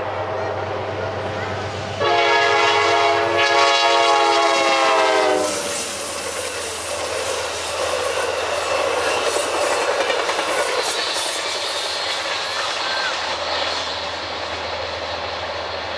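A diesel locomotive engine rumbles as a train approaches and passes close by.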